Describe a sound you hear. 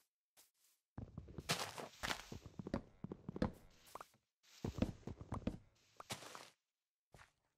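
Wooden blocks crack and break in quick knocking bursts.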